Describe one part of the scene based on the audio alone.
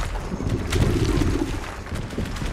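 A huge creature growls low and loud.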